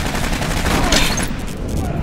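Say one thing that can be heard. Gunshots ring out with sharp cracks.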